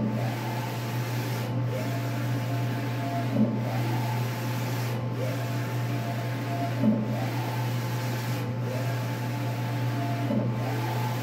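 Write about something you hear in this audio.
A printer's head carriage whirs back and forth in a steady rhythm.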